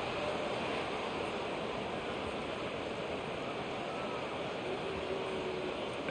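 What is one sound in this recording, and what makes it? A large stadium crowd cheers and murmurs in a steady roar.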